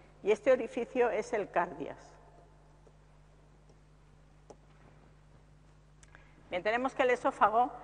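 An older woman speaks calmly into a close microphone, pausing between phrases.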